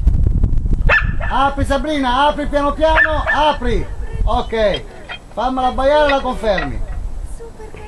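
A dog whines and howls in rising and falling tones.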